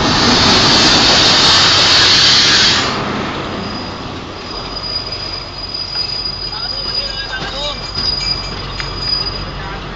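Train wheels clatter over the rail joints.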